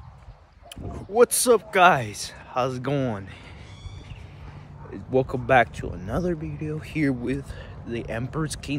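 A young man talks with animation close to the microphone.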